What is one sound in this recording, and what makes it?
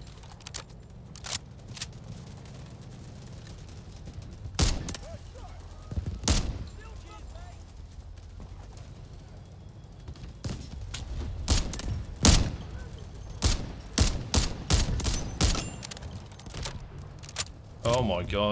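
Rifle shots crack loudly with echoing booms.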